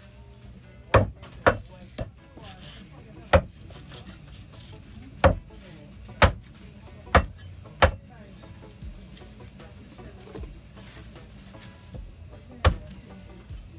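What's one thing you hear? A cleaver chops through dried fish on a wooden block with sharp thuds.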